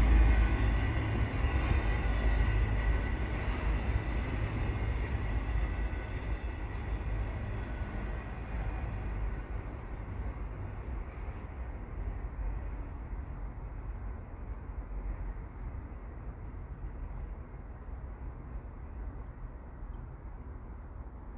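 A freight train rumbles along the tracks and slowly fades into the distance.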